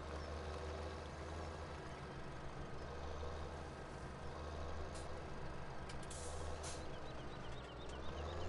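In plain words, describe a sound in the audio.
A seed drill rattles over the soil.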